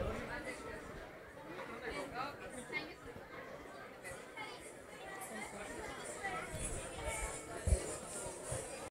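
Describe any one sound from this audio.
Music with singing plays through a loudspeaker in a hall.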